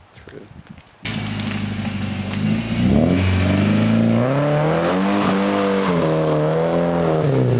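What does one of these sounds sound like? A car engine idles loudly nearby and then revs up and down.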